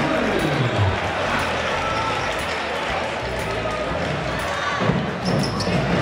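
A large crowd murmurs and cheers steadily in an echoing hall.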